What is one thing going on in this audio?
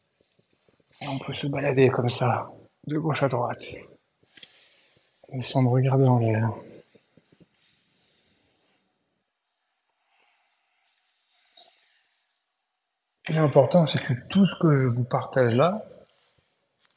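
A man speaks calmly and clearly, close to the microphone, in short phrases with pauses.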